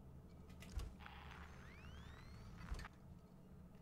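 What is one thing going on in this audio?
A handheld tracker beeps and chirps softly.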